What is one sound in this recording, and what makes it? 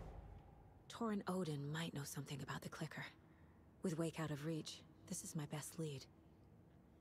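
A woman speaks calmly in a game character's voice.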